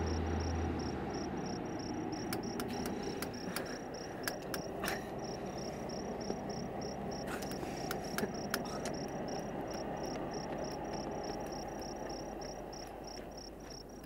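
A car engine hums at idle.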